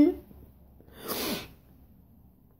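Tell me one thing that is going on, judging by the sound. A young woman draws a sharp, shaky breath.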